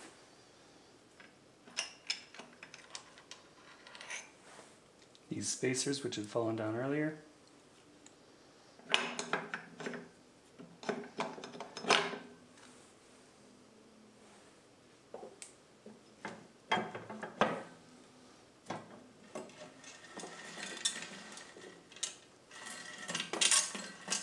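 Metal parts clink and clatter as hands work on an engine block.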